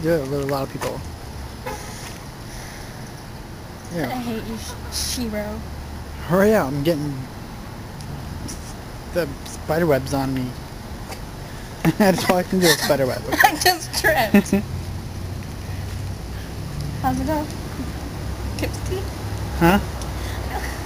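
A young woman talks and laughs cheerfully close by.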